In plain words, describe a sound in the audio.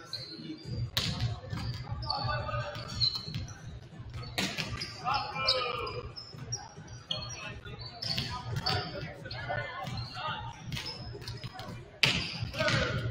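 A volleyball smacks against hands.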